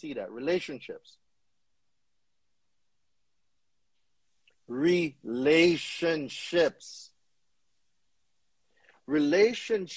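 A man talks with animation over an online call, in short bursts.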